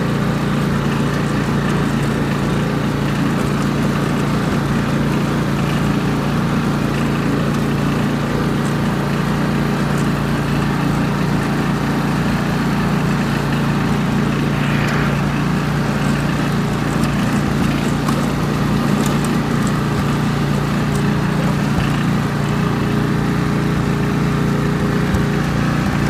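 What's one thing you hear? A riding mower's engine runs with a steady loud drone.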